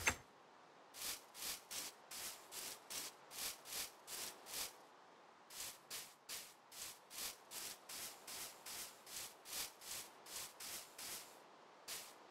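Footsteps tread steadily over grass.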